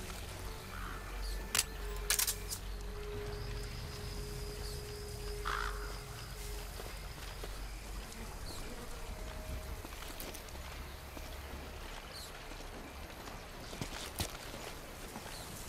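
Soft footsteps shuffle on dirt as a soldier creeps along crouched.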